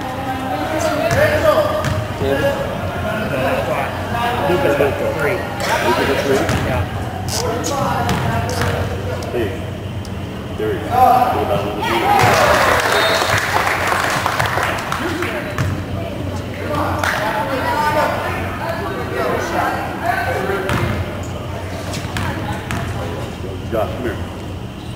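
Voices of boys and adults chatter in a large echoing hall.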